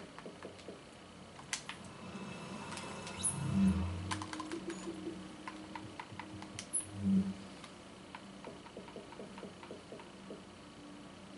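Short menu clicks and blips sound as options are selected.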